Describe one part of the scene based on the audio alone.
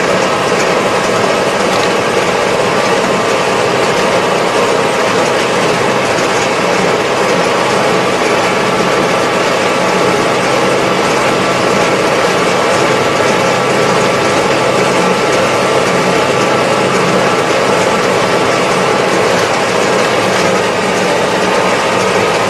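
A tractor engine drones steadily from inside a closed cab.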